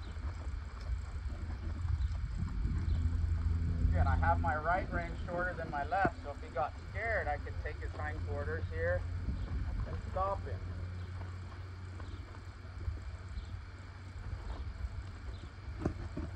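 A horse walks on soft sand, its hooves thudding dully.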